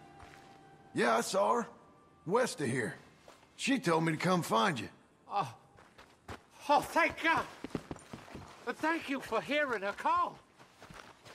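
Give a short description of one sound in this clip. A man speaks tensely and loudly close by.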